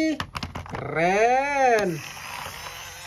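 A toy police car's siren wails in a rising and falling sweep.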